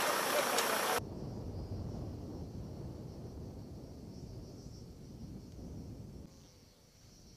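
A helicopter thuds faintly far off.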